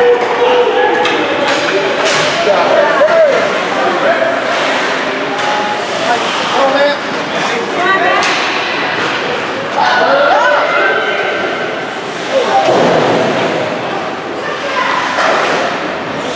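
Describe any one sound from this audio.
Ice skates scrape and carve across an ice rink.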